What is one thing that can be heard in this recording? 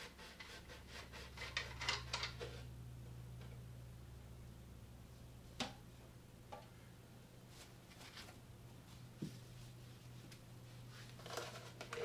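A cloth rubs and rustles against metal.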